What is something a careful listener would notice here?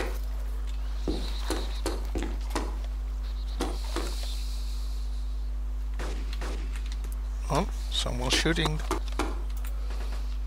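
Footsteps thud on metal stairs.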